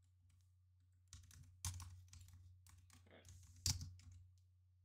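A small plastic game piece taps and slides across a table mat.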